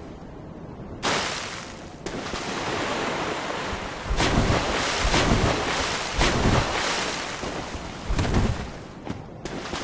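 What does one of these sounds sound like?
Footsteps splash loudly through shallow water.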